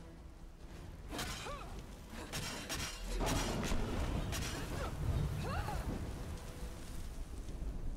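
A dragon roars loudly.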